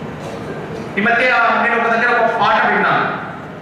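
A young man sings loudly through a microphone and loudspeakers.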